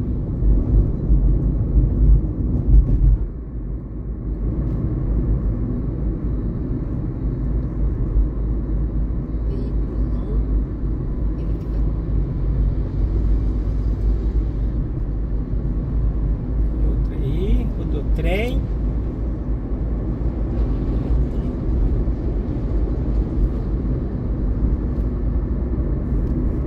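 Tyres and road rumble drone from inside a car driving on asphalt.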